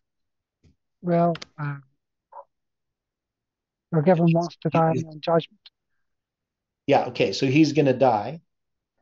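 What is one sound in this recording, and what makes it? A middle-aged man speaks calmly and close to a microphone, reading out with pauses.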